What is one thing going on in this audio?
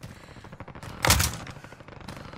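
A single loud gunshot cracks close by.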